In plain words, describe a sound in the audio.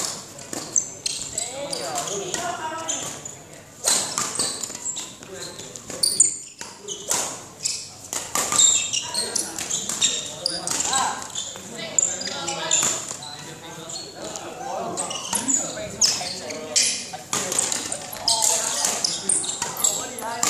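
A badminton racket smacks a shuttlecock.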